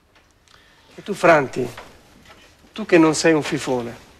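A man speaks firmly and clearly nearby.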